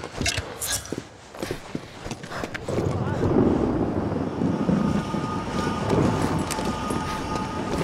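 Boots thud on wooden boards.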